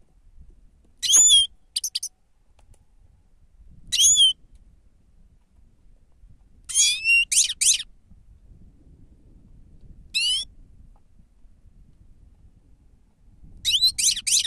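A caged finch chirps in short, bright, twittering bursts close by.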